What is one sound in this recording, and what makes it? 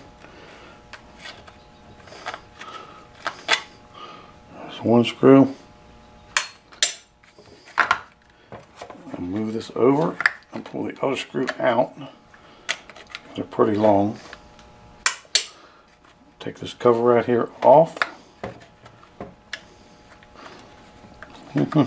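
Small plastic parts click and tap as they are handled.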